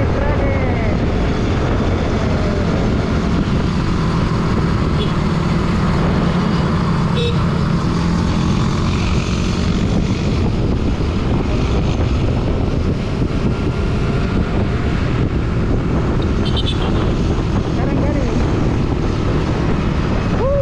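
A motorcycle engine hums steadily as it rides.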